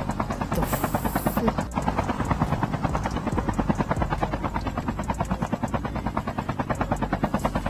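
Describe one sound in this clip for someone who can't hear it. A helicopter's rotor chops rapidly and steadily.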